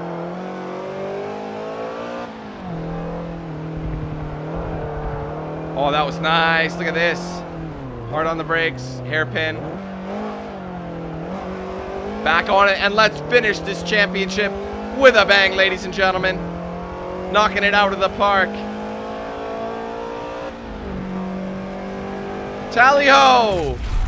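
A car engine hums steadily, its pitch rising and falling with gear changes.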